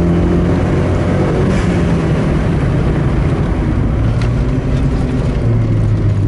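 A turbocharged four-cylinder petrol car engine pulls hard under acceleration, heard from inside the car.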